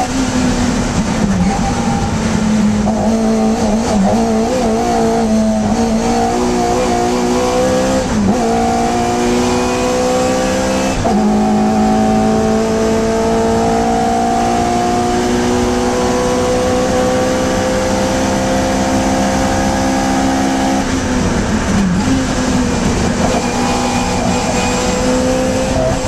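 A small four-cylinder Hillman Imp race car engine revs hard at full throttle from inside the cabin, shifting up through the gears.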